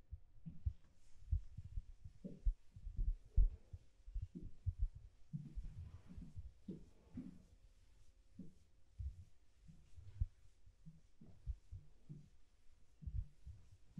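An eraser rubs against a board.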